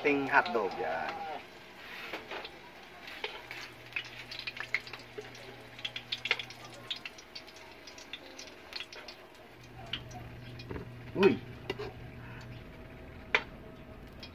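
Metal tongs clink against a metal pan.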